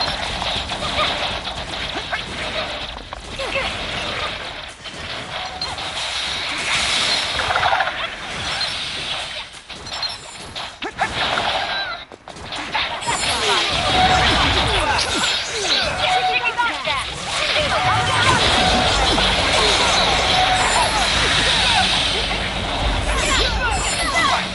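Whooshing strikes and impacts clash in a fast fight.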